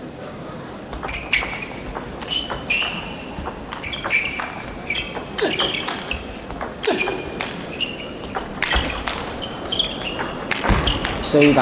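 A ping-pong ball clicks back and forth between paddles and table in a quick rally.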